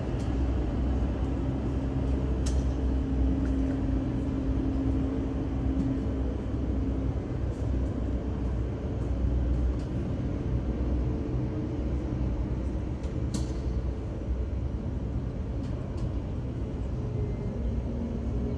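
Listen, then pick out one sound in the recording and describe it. A jet airliner's engines hum and whine steadily as it taxis nearby.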